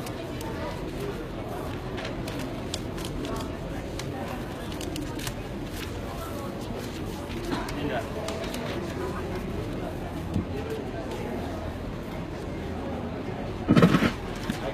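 A crowd murmurs in a large room.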